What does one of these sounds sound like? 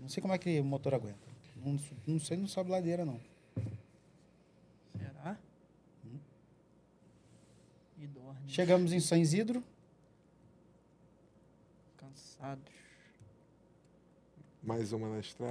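A middle-aged man speaks with animation into a close microphone, in short bursts with pauses.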